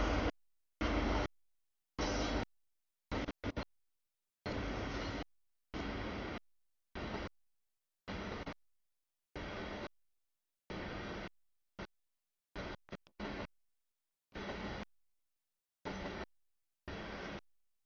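A freight train rumbles and clatters past close by, the sound cutting in and out.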